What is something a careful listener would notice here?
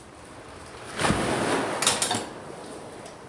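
Dry roots rustle and crackle as they are handled.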